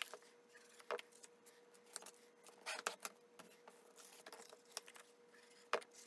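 Paper rustles and taps as hands fold and handle card stock.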